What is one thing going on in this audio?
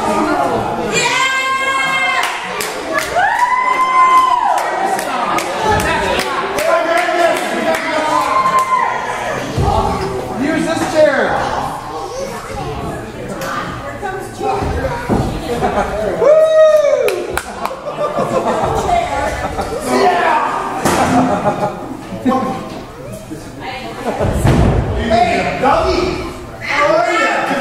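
A crowd shouts and cheers loudly nearby.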